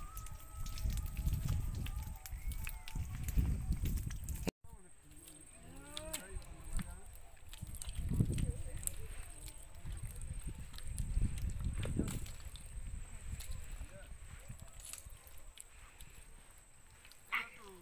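Footsteps squelch through wet mud.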